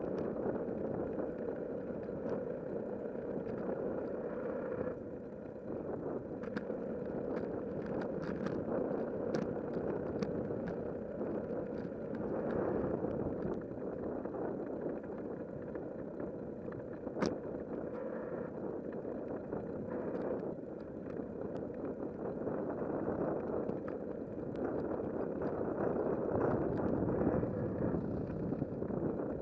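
Wind roars steadily past while moving along outdoors.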